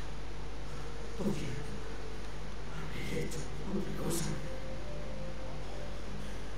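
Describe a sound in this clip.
A young man speaks quietly and hesitantly.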